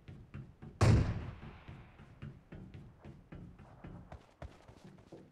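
Footsteps clang on metal stairs at a steady pace.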